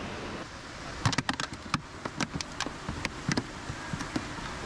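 Small clicks and rattles come in quick bursts close by.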